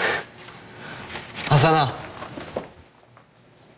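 A young man laughs brightly.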